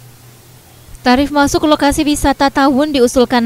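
A woman speaks clearly and close by.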